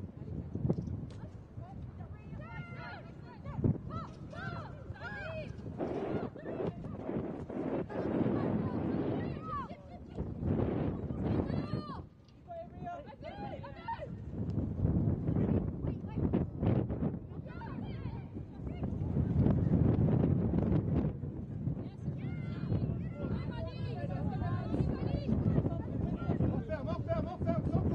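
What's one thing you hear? Young women shout to one another outdoors on an open field.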